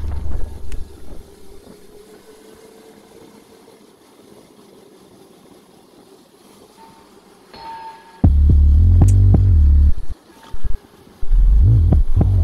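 A small motorbike engine hums ahead.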